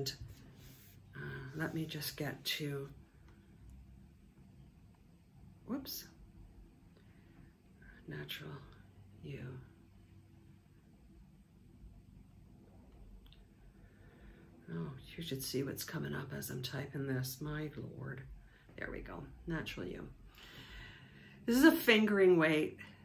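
A middle-aged woman talks calmly and close by, pausing often.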